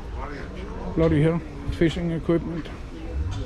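A man talks nearby in a lively voice.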